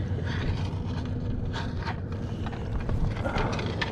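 A metal scoop scrapes and clinks against stones underwater.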